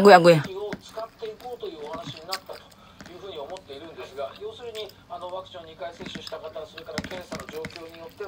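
A woman chews food with smacking sounds.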